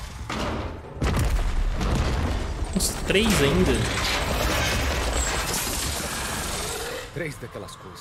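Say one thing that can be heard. A huge machine creature roars and rumbles.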